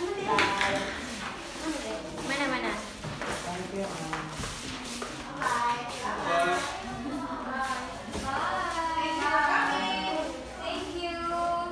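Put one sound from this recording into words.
Paper sheets rustle as they are handled.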